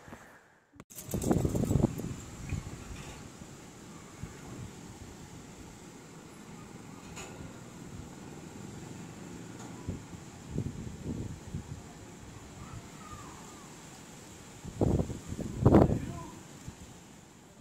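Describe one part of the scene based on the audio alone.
Wind gusts roar outdoors.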